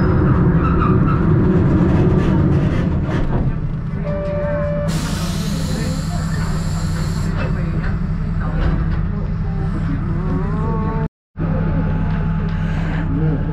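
A train engine rumbles steadily as the train rolls slowly along.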